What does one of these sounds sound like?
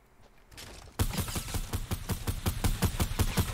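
A gun fires in rapid bursts close by.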